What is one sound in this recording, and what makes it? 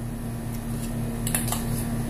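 A spoon clinks against a metal bowl.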